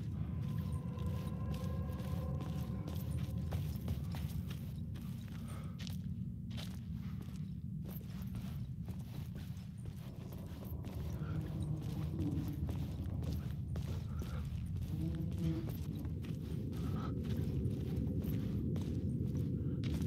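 Footsteps crunch slowly over gravel and debris.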